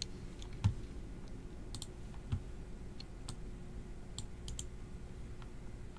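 Keys on a computer keyboard click and tap now and then.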